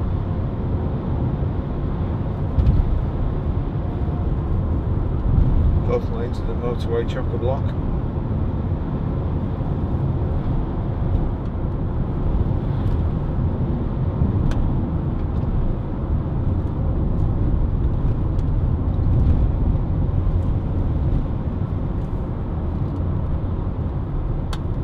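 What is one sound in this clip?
A car engine hums steadily with tyres rolling over the road.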